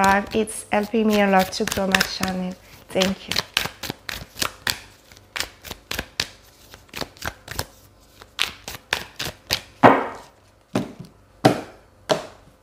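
Playing cards slap and riffle as they are shuffled.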